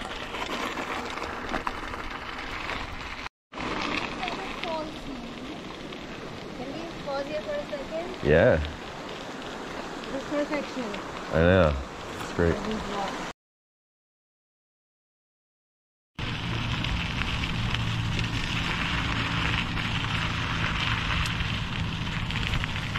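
Wind rushes across the microphone.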